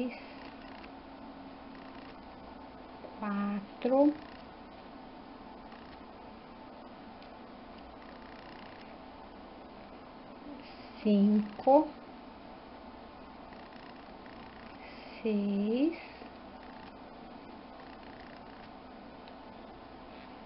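Plastic knitting needles click and tap softly against each other.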